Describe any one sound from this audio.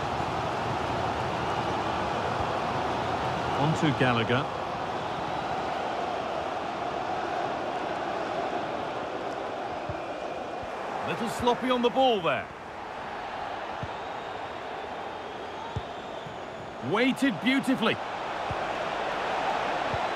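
A stadium crowd murmurs and chants steadily.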